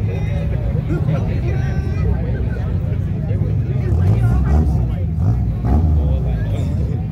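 Car engines idle and rumble nearby, outdoors.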